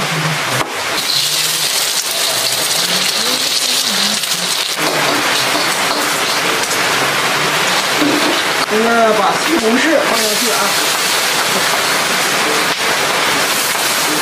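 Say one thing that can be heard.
An egg sizzles in hot oil in a wok.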